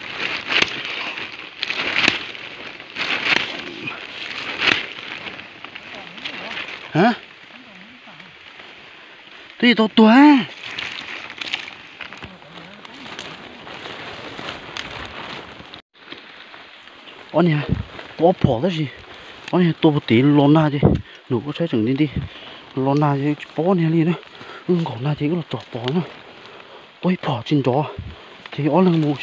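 Leaves and twigs rustle close by.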